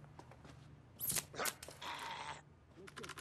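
Blows land with sharp thuds in a brief scuffle.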